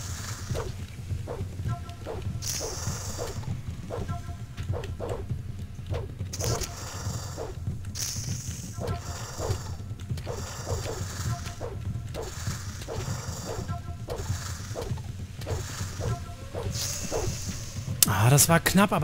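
A creature snarls and hisses again and again.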